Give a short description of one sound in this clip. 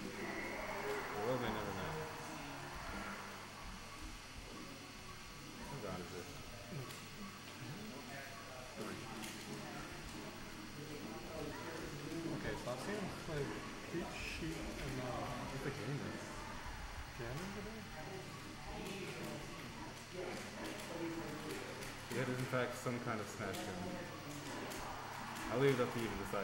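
Two young men talk with animation into microphones, close by.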